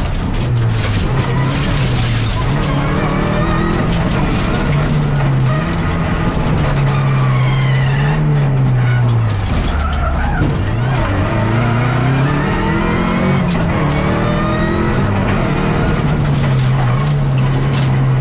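A car engine roars loudly, revving up and down through gear changes.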